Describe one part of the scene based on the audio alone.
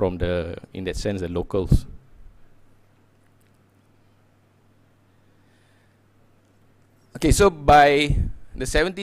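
A man speaks calmly into a microphone, pausing briefly.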